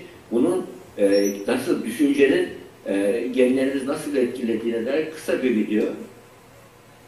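A man speaks with animation over a loudspeaker from an online call.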